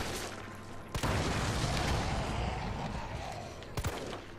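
A large explosion booms and rumbles away.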